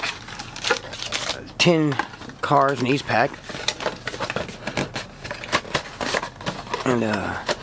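Trading card packs rustle and tap as hands shuffle them.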